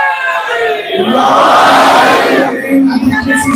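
A crowd cries out together in response.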